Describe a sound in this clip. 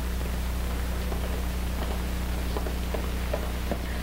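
A man's footsteps tread across a floor.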